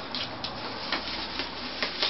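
A parrot flaps its wings in a quick flutter.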